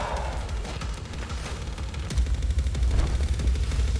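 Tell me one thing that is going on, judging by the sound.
A large bird flaps its wings heavily.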